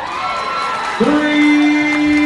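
A referee's whistle blows loudly.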